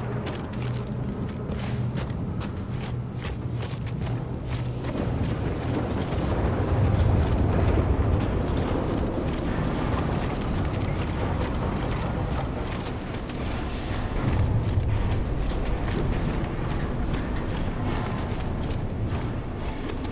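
A strong wind howls and roars steadily.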